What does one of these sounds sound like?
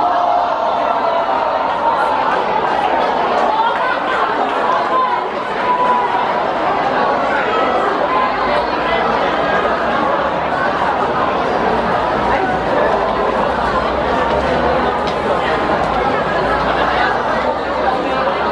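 A crowd of children shouts and chatters in the distance, outdoors.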